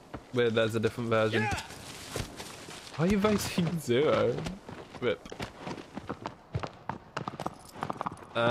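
A horse's hooves gallop over the ground.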